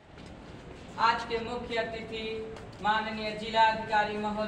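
A teenage boy recites loudly in an echoing room.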